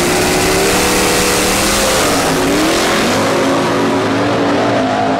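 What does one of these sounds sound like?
Loud car engines roar as two cars launch and race away.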